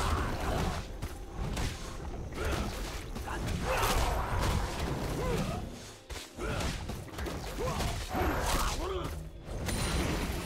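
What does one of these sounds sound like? Spell effects whoosh and burst in a fast game battle.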